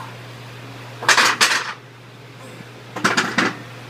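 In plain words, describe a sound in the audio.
Heavy dumbbells clank onto a metal rack.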